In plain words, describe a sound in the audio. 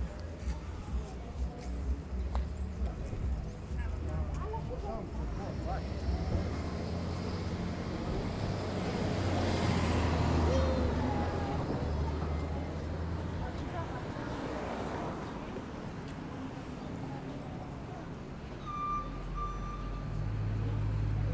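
Cars pass on a city street.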